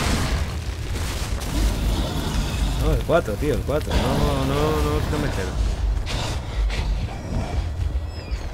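A large creature stomps along with heavy thudding footsteps.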